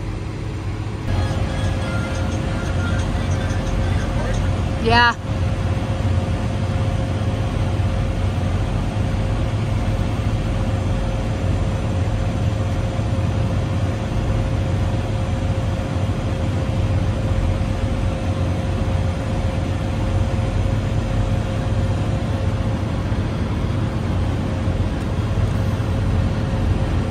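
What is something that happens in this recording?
A diesel engine idles with a steady, deep rumble and hum close by.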